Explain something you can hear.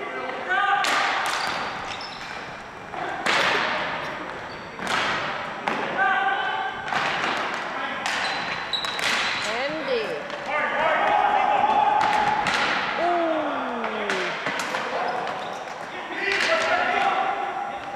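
Ball hockey sticks clack against a ball on a hard gym floor.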